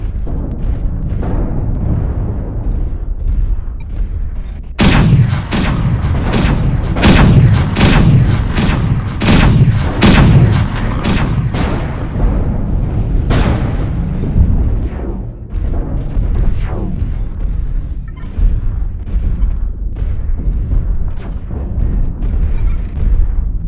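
Heavy machinery rumbles low and steady throughout.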